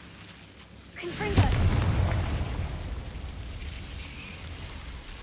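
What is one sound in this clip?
A fire bursts into flame with a loud whoosh.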